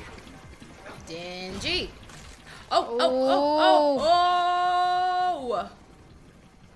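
A young woman cries out in shock.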